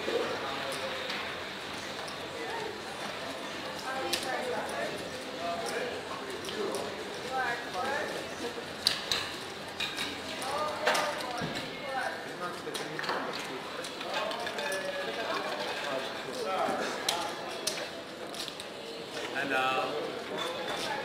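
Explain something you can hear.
Casino chips click and clatter on a table.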